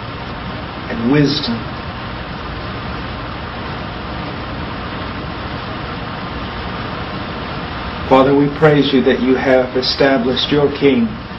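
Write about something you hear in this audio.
A man speaks quietly and calmly into a close microphone.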